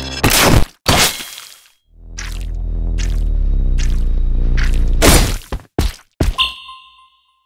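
Sword slashes swish and strike sharply, several times in quick bursts.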